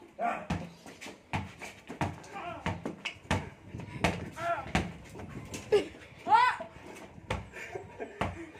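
Young men shout and laugh with animation nearby.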